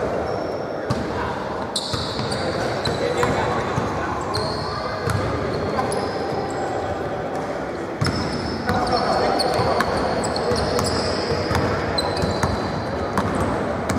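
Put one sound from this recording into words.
A basketball bounces with thuds.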